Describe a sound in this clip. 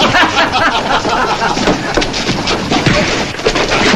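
Men scuffle and grunt in a fight.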